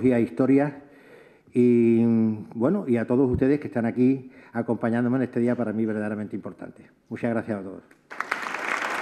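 An older man speaks calmly into a microphone in a large room.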